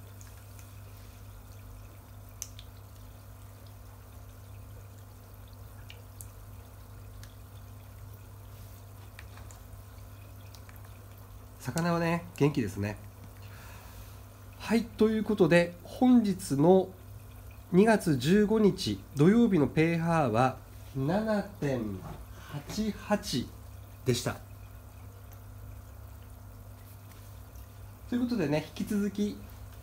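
Water ripples and bubbles steadily in a tank.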